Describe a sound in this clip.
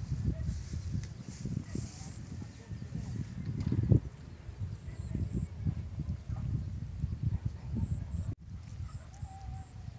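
Wind gusts outdoors, buffeting the microphone with low rumbles.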